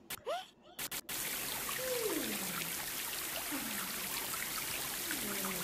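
A shower sprays water steadily.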